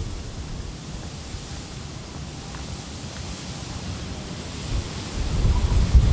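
Wind buffets outdoors, growing stronger toward the end.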